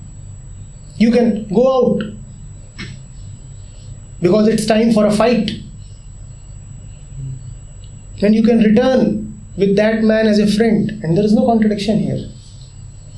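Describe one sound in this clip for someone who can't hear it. A man speaks calmly and clearly close to a microphone, in short phrases with pauses.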